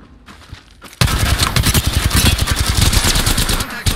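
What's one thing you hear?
A rapid-fire gun fires a long burst.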